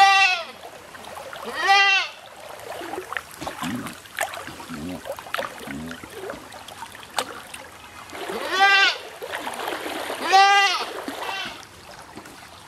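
A goat bleats loudly, several times.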